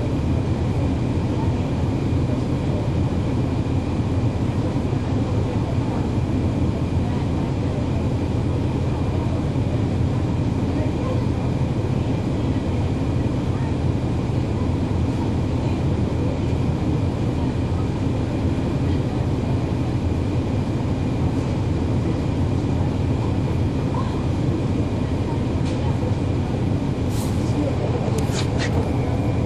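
A diesel transit bus engine drones, heard from on board.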